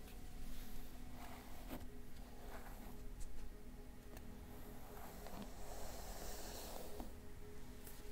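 Hands rub and rustle over skin and clothing.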